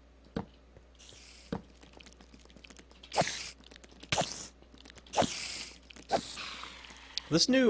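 A giant spider hisses.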